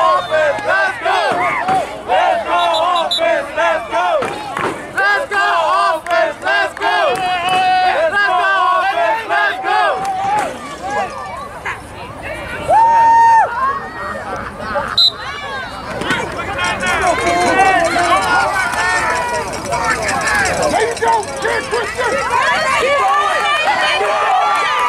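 A crowd of people shout and cheer nearby, outdoors.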